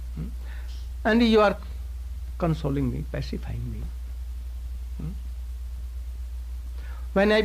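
An elderly man speaks calmly into a microphone, in short phrases with pauses.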